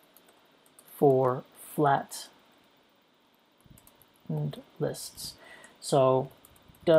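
A man speaks calmly and clearly into a nearby microphone, in short phrases.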